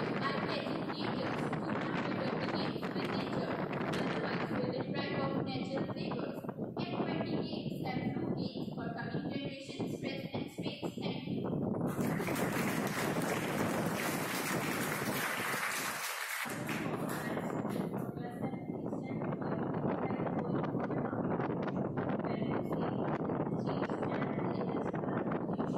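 A young girl speaks clearly into a microphone in an echoing room.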